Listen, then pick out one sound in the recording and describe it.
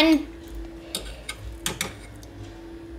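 A spoon clinks against a metal pot.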